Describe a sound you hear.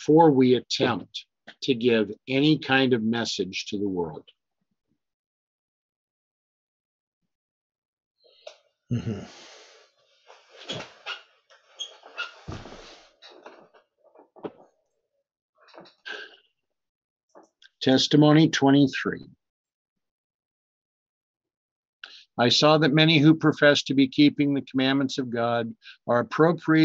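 An older man speaks calmly and closely into a microphone, pausing between phrases.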